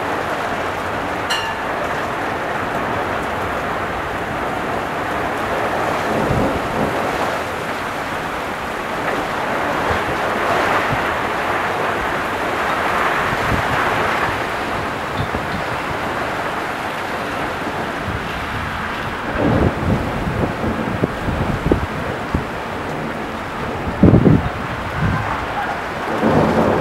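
Strong wind gusts and buffets loudly.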